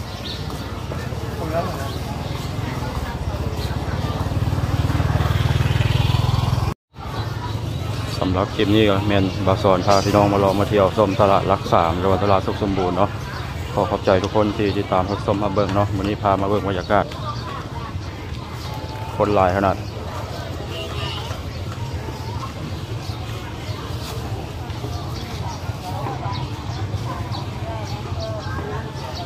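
Men and women chatter in a crowd all around, outdoors.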